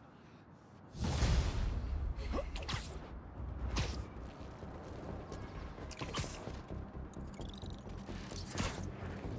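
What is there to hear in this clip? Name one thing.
Wind rushes past in loud, swooping whooshes.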